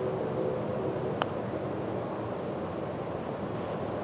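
A golf club chips a ball with a soft tap.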